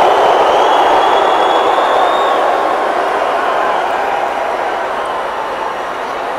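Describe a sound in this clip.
A large crowd cheers and roars loudly in a big echoing arena, slowly fading.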